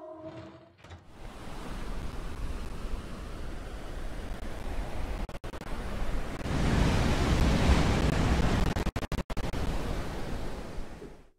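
Water roars.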